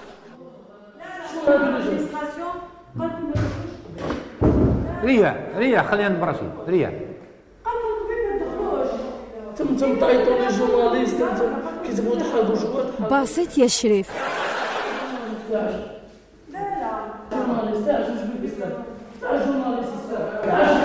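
A man speaks calmly into a microphone close by.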